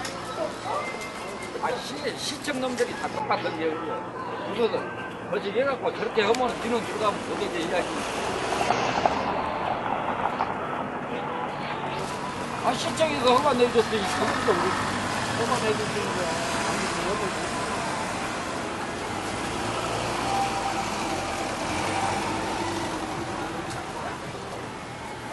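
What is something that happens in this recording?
People talk in a busy outdoor crowd.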